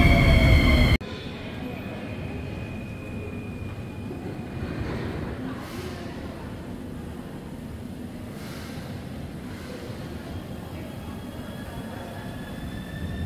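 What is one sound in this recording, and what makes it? A subway train idles with a low hum in an echoing station.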